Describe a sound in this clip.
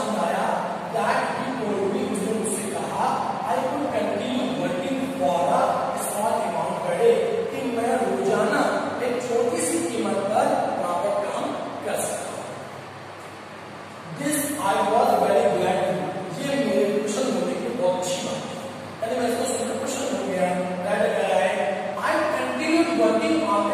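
A man lectures with animation close by.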